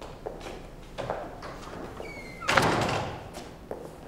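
A heavy wooden door opens and closes.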